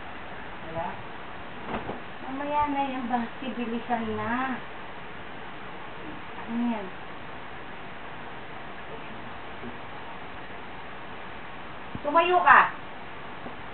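A woman speaks briefly and casually nearby.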